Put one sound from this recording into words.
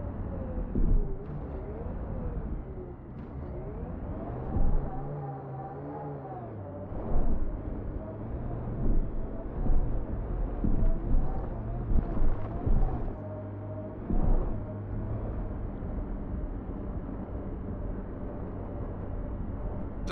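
A vehicle engine hums and whines as it drives over rough ground.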